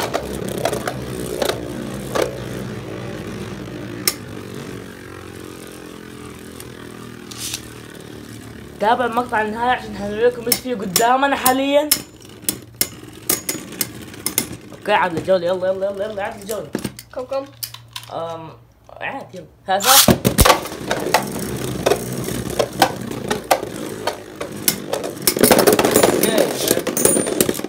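Spinning tops clack against each other and the bowl's wall.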